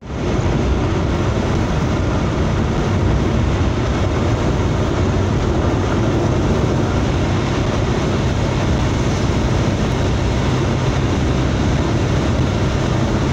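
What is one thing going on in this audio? Tyres roar on the road surface at speed.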